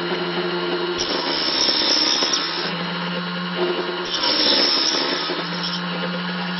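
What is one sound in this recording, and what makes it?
A saw blade bites through wood in short bursts.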